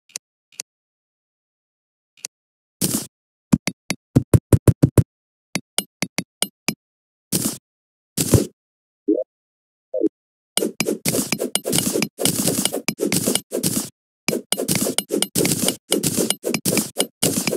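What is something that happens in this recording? Game sound effects click and thud as blocks are placed and mined.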